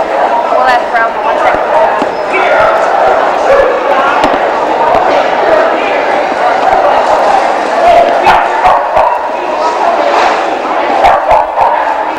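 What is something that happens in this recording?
A man calls out commands to a dog.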